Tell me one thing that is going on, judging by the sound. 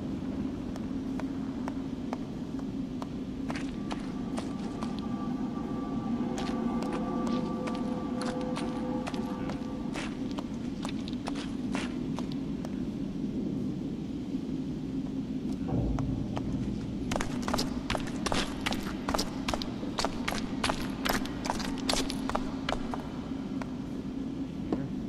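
Footsteps crunch on gritty ground, first at a walk and then quickly at a run.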